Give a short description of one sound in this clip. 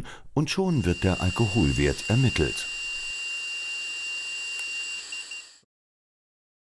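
A woman blows steadily into a breath tester.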